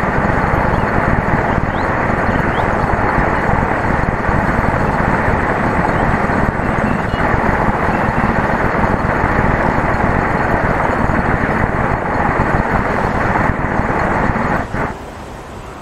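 A plastic ball rolls steadily over pavement with a rumbling hiss.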